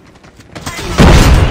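An automatic rifle fires.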